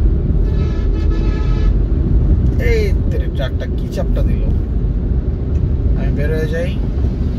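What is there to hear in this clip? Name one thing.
A vehicle engine rumbles steadily, heard from inside a moving car.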